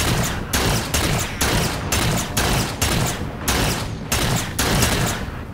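An energy gun fires loud shots in a quick, steady rhythm.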